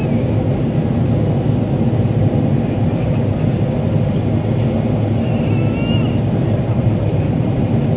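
A jet engine roars steadily in flight, heard from inside the cabin.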